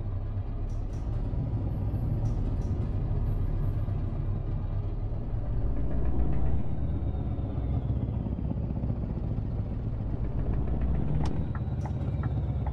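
A truck engine rumbles steadily at low speed.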